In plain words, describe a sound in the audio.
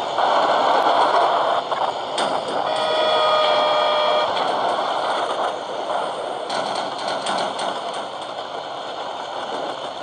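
A tank engine rumbles and roars steadily in a video game.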